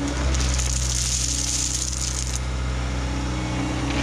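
Gravel pours and rattles out of a loader bucket.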